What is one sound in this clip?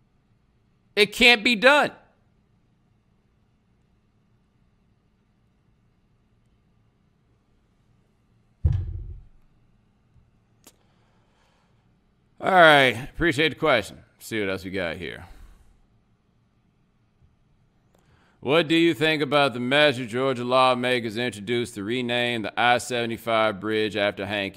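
A man speaks calmly and close into a microphone, with pauses between phrases.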